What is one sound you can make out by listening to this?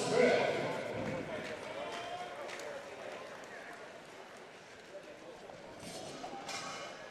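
Dumbbells clank and thud on a hard floor.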